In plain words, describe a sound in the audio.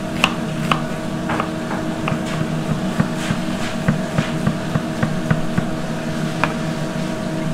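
A knife chops quickly on a cutting board.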